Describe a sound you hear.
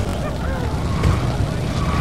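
A motorcycle engine roars close by.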